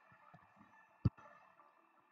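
A short electronic click sounds.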